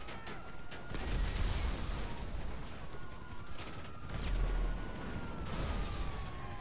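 Explosions boom from a tank's cannon fire.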